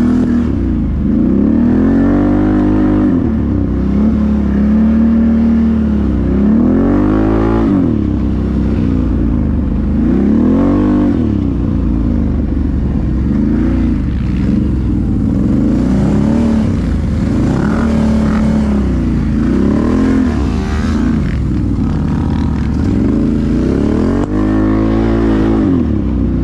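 A quad bike engine roars close by, revving up and down again and again.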